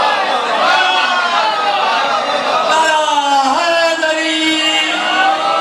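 A man sings loudly into a microphone with a strong, sustained voice.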